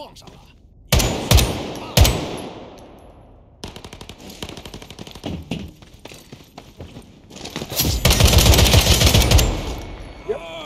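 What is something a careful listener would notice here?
Gunfire bursts out loudly in rapid shots.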